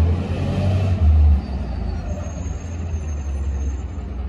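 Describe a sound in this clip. A garbage truck's engine idles farther down the street.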